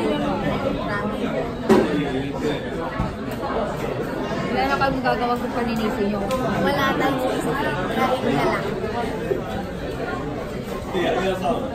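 A second young woman talks and laughs close by.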